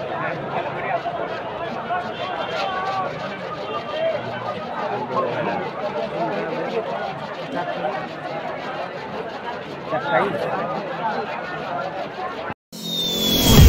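A crowd cheers and shouts loudly nearby.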